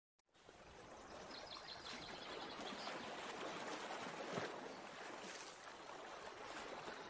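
A waterfall rushes and splashes steadily into a pool.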